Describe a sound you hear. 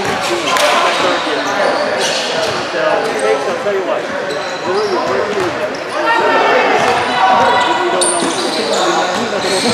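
Sneakers squeak sharply on a court in an echoing hall.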